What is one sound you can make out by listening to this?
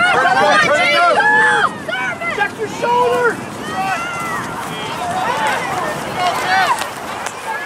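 Spectators shout and cheer excitedly close by.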